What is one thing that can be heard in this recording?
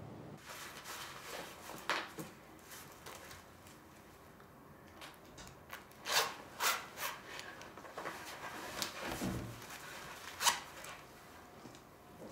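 Clothing rustles.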